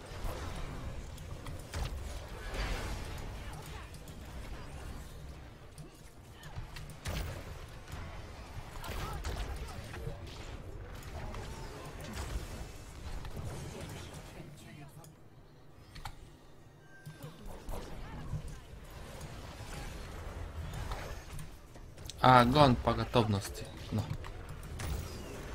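Fantasy battle sound effects clash and burst with spell blasts.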